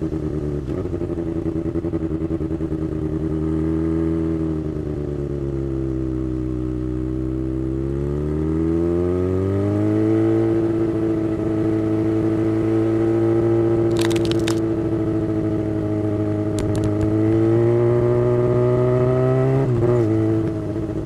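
A motorcycle engine hums steadily close by, its pitch rising as it speeds up.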